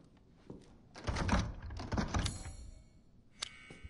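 A wooden door creaks and shuts.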